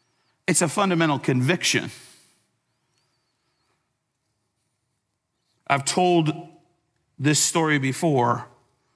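A man speaks with emphasis through a microphone, with pauses.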